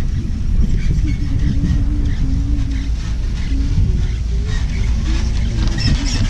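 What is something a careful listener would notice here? A chairlift cable whines and rumbles as it rolls past a lift tower.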